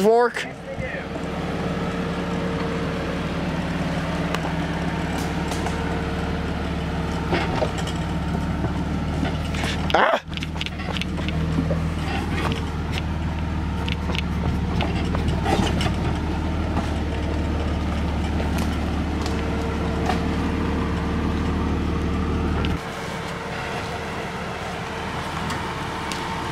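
A Jeep Cherokee SUV's engine labours as it crawls uphill on a dirt trail.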